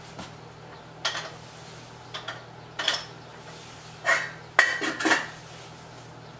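Dishes clink and knock.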